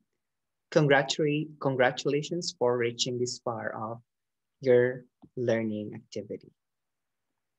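A young man speaks calmly into a headset microphone, heard as if over an online call.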